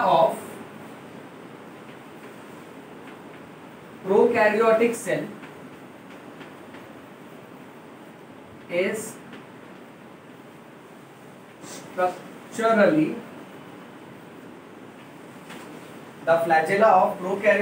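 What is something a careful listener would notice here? A man speaks calmly in short bursts, close by.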